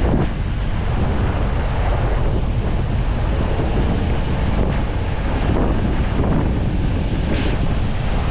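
Wind buffets and roars loudly outdoors.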